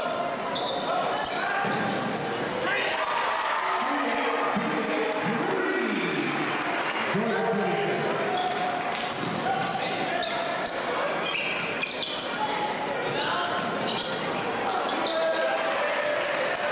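A large crowd cheers and shouts in a big echoing gym.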